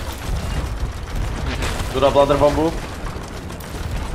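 A cannon fires with a loud boom.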